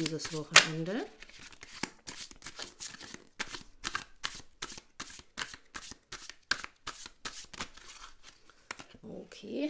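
Playing cards flutter and snap quickly as a deck is shuffled by hand.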